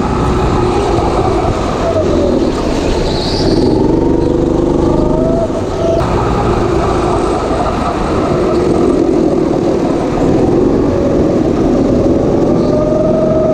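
A go-kart engine drones loudly up close, its pitch rising and falling as the kart speeds up and slows.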